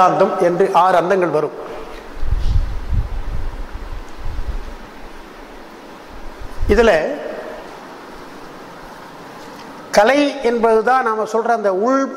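An elderly man speaks with animation into a microphone.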